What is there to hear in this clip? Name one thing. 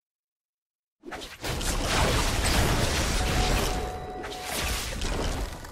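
Game sound effects of fighting and spells clash and burst.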